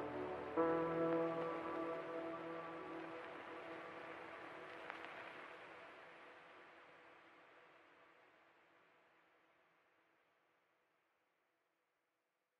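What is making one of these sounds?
Music plays from a record player and slowly fades away.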